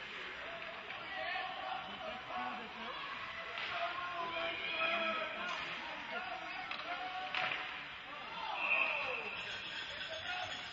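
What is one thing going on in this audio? A crowd of spectators murmurs and calls out in the echoing hall.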